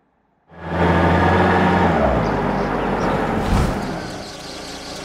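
A car engine hums as the car drives up and slows to a stop.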